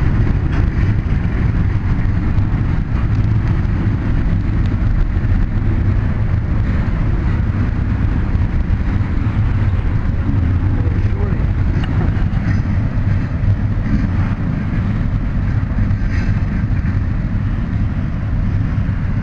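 A freight train rumbles steadily past nearby.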